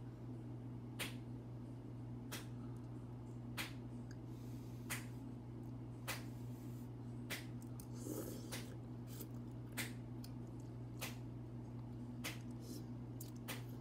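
A young girl slurps and chews noodles with smacking sounds.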